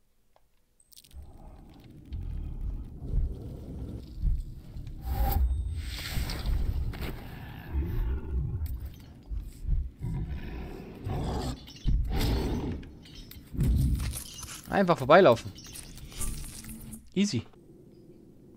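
A large creature growls and roars nearby.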